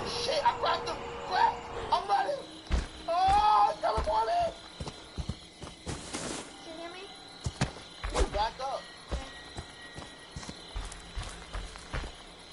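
Heavy footsteps crunch on a dirt path.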